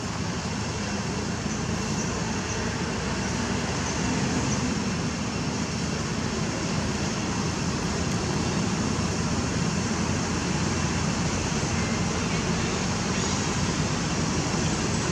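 Wind rustles steadily through leaves overhead.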